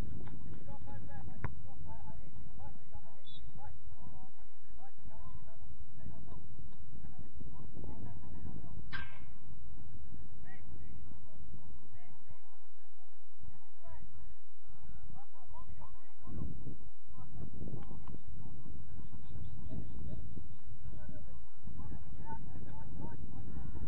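Players shout to each other across an open field, far off.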